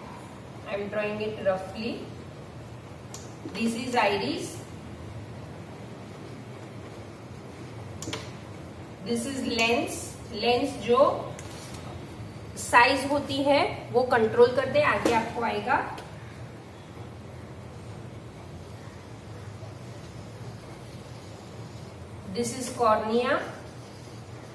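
A woman speaks calmly in short bursts, close by.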